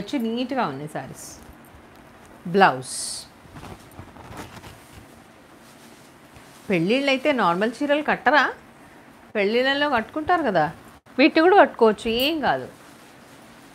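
A woman speaks calmly and clearly close by, as if presenting.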